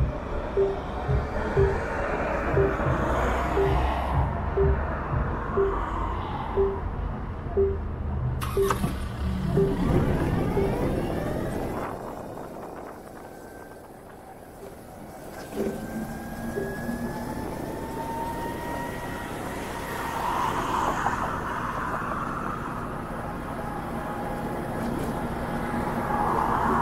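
A motorcycle engine hums and rumbles steadily close by.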